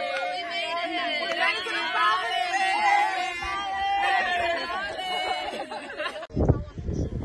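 A group of young women and men cheer and shout excitedly outdoors.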